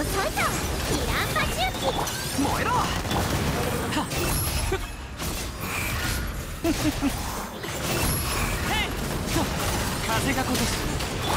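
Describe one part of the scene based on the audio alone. Swords slash and magical blasts crash and whoosh in a fast fight.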